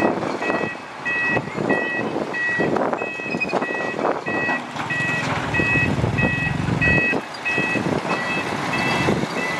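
A vehicle's reversing alarm beeps in a steady, even rhythm.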